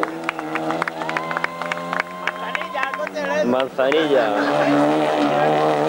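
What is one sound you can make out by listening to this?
A rally car engine roars and revs hard as it speeds past.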